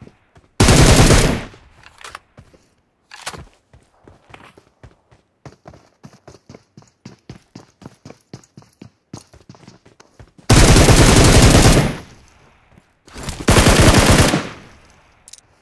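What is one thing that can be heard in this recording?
Rifle fire rattles in loud rapid bursts.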